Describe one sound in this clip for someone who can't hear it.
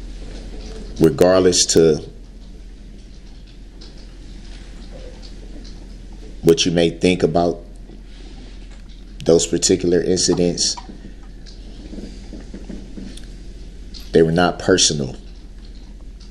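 An adult man speaks through a microphone in short bursts with long pauses.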